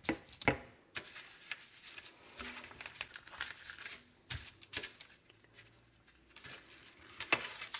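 Hands rustle baking paper.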